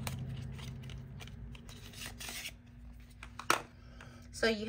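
Cardboard packaging rustles and scrapes between fingers.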